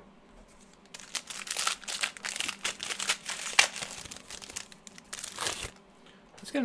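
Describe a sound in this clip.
Card packs rustle and crinkle in hands.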